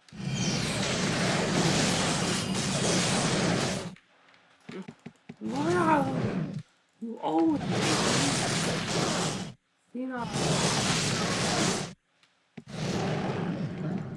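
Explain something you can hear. Magic spells crackle and roar in a noisy fight.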